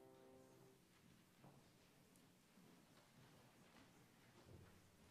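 A congregation murmurs quietly in a large echoing hall.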